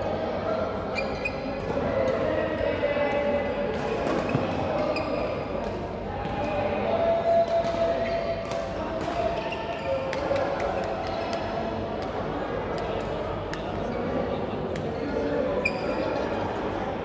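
Shuttlecocks are struck sharply by rackets in a large echoing hall.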